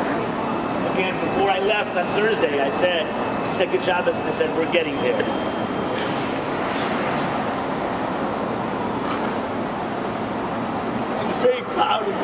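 An elderly man speaks cheerfully close by.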